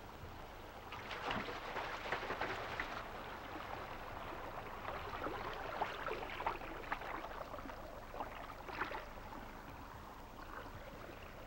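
Water laps and ripples softly.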